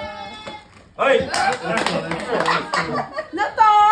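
A group of people cheers and laughs loudly.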